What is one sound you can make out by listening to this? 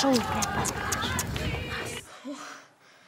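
A young woman speaks outdoors.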